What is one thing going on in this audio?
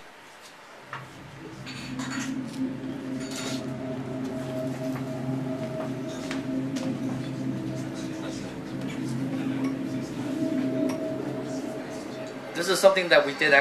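Music plays through loudspeakers in a room.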